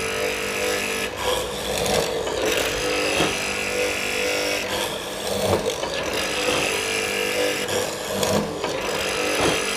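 A mortising chisel plunges into wood with repeated chopping and grinding.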